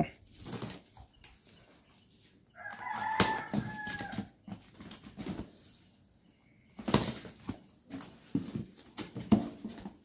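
Cardboard box flaps are pulled open with a scraping rustle.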